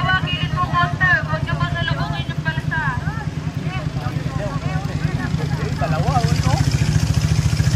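Several young adults chat nearby outdoors.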